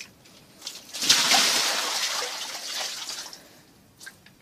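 A dog splashes in a shallow tub of water.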